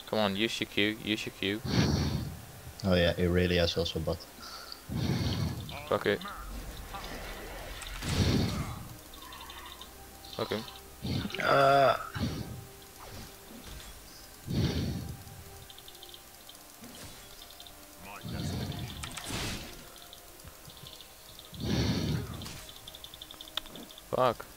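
Magic spells whoosh and blast in short bursts.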